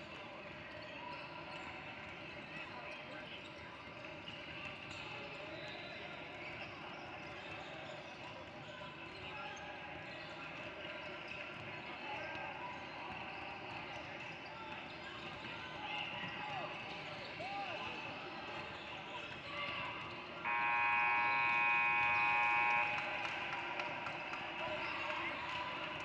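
A crowd of children and adults chatters in the background.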